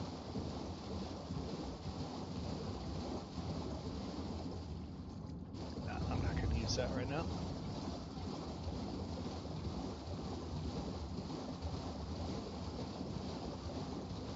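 A horse gallops through shallow water, hooves splashing steadily.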